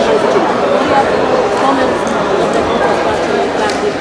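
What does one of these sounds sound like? A crowd of children chatters in a large echoing hall.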